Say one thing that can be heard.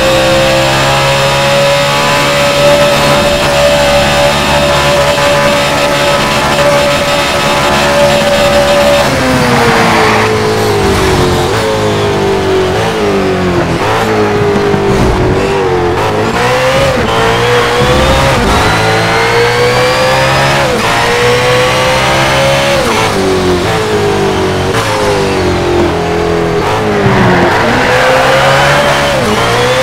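A racing car engine roars at high speed, its pitch dropping and climbing as it brakes and shifts gears.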